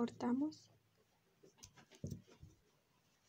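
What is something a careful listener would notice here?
Scissors snip through thread.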